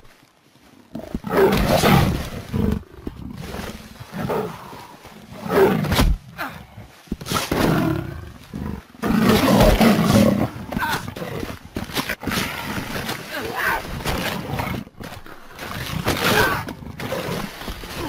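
Big cats snarl and growl as they fight.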